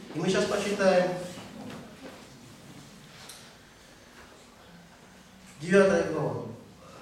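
A man speaks through a microphone and loudspeakers in an echoing room, in short, emphatic bursts.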